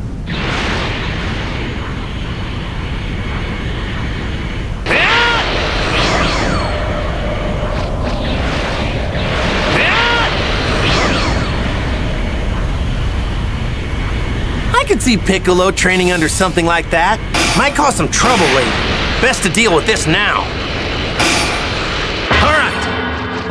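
Wind rushes steadily past during flight.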